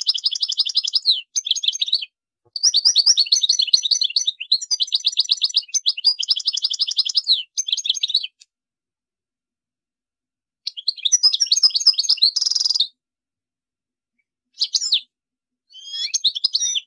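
A small songbird sings close by in fast, twittering bursts with short pauses.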